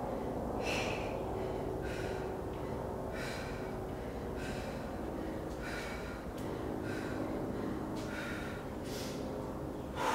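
A woman breathes out sharply in a steady rhythm close by.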